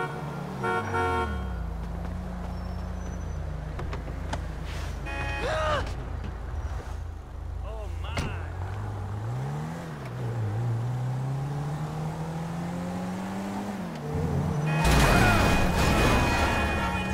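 A car engine rumbles and revs as the car speeds away.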